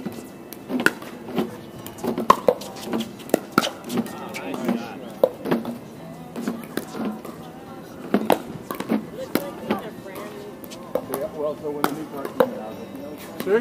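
Paddles hit a plastic ball with sharp pops, again and again, outdoors.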